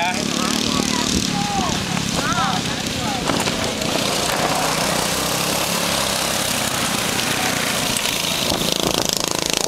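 Small kart engines buzz and whine as go-karts race past.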